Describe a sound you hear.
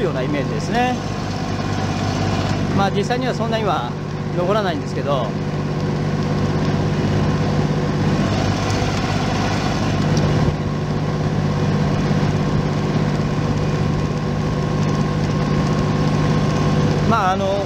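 A tractor engine runs with a steady low drone.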